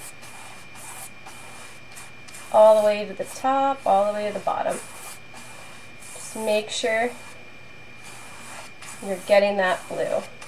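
A paintbrush brushes across canvas.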